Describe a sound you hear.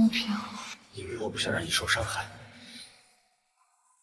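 A young man answers softly and close by.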